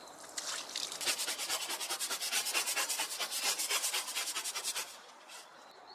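A brush scrubs wet concrete with quick rhythmic strokes.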